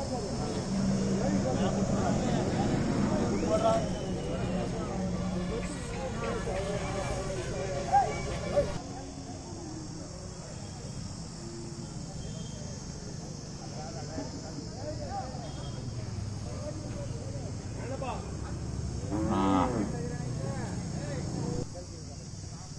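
Men talk in a crowd outdoors.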